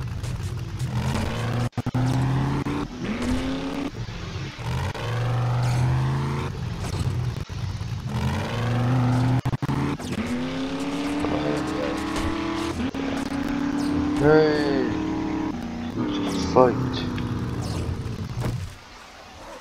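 A vehicle engine revs and drones, rising and falling in pitch.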